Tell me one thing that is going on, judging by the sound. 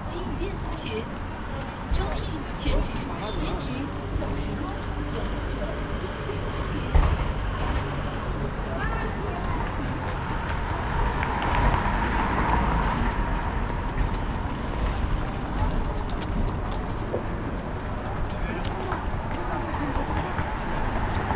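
Street noise rumbles steadily outdoors.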